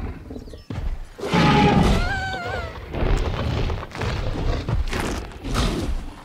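A large dinosaur roars loudly.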